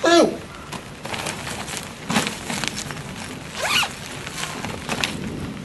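A bag's fabric rustles as a man rummages through it.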